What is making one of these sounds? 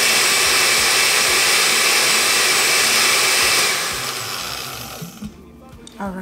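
A blender whirs loudly, then winds down and stops.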